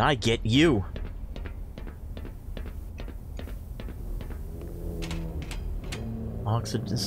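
Footsteps clank on a metal grating.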